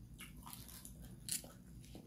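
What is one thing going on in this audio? Fresh lettuce leaves crackle and rustle in a hand.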